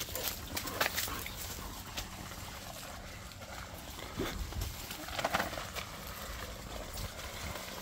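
A dog's paws patter and rustle over grass and plastic sheeting.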